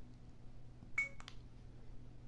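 A small electronic device gives a short beep.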